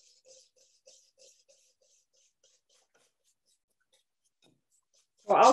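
A whisk taps and scrapes against a bowl in quick strokes.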